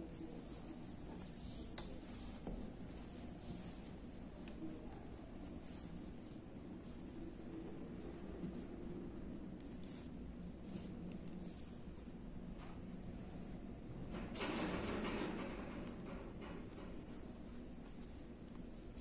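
Yarn rustles softly as hands handle crocheted fabric.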